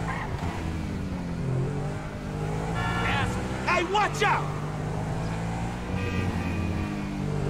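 A sports car engine hums steadily while driving.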